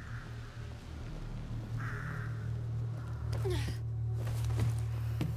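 Footsteps crunch softly on gravel and rubble.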